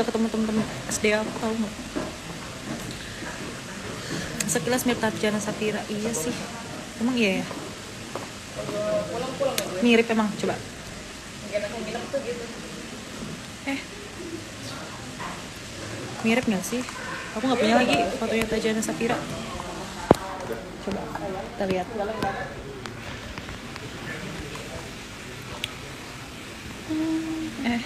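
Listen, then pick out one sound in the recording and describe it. A young woman talks calmly and casually, close to a phone microphone.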